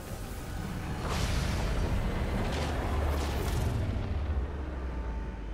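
A loud explosion booms and rumbles.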